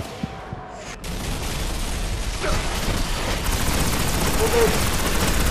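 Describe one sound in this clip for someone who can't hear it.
An energy gun fires in rapid bursts.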